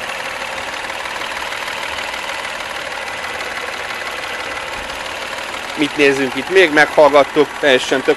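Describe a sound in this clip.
A car engine idles with a steady hum.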